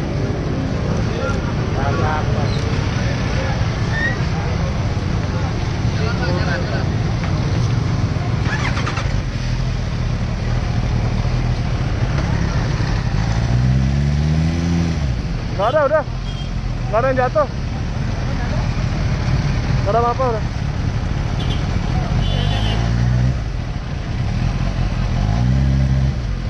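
A motorcycle engine rumbles close by at low speed.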